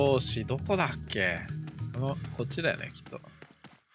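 Footsteps run on a dirt path.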